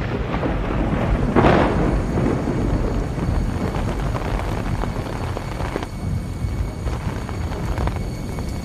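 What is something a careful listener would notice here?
Raindrops patter on an umbrella.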